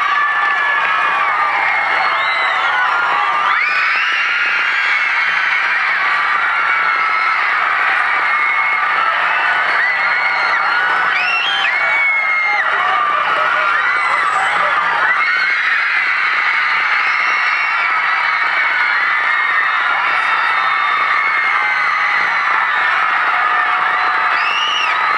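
A huge crowd screams and cheers loudly in a large arena.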